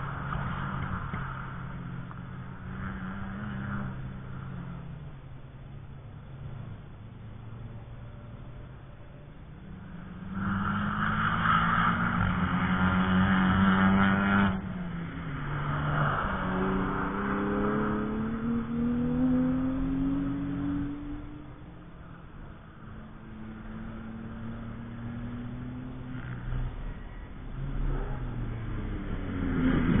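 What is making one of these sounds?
Race car engines roar past, revving up and down.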